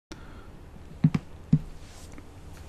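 A short menu blip sounds as a selection moves.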